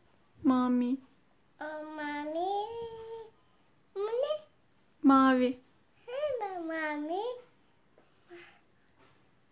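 A little girl talks and exclaims excitedly close by.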